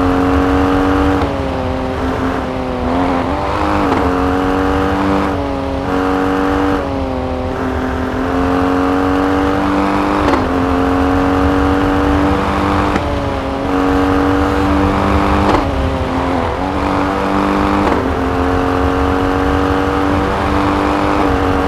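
An SUV engine races at high revs.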